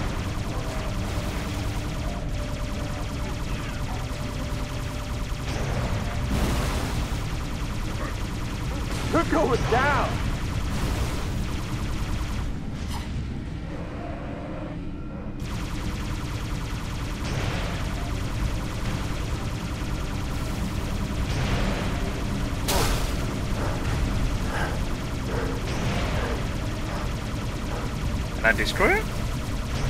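A hovering craft's engine hums steadily.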